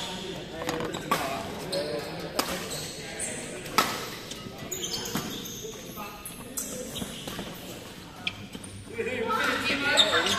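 Rackets strike a shuttlecock with sharp pops.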